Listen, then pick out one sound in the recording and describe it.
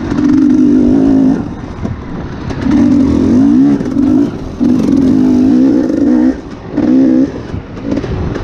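A dirt bike engine revs up and down in loud bursts.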